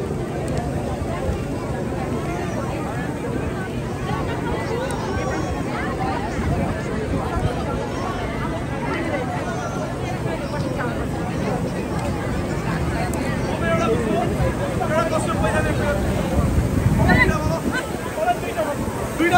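A large outdoor crowd of men and women chatters all around, growing louder near the end.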